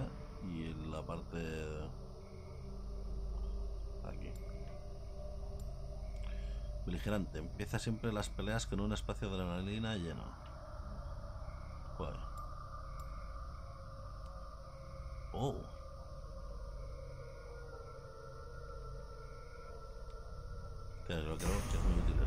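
A man talks casually into a nearby microphone.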